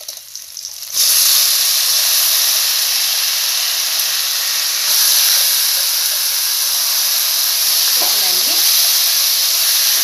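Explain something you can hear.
Food sizzles loudly in hot oil in a pan.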